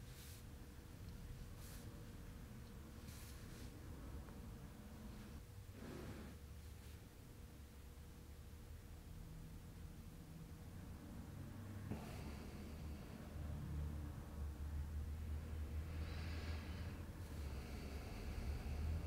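Hands press and rub softly against clothing.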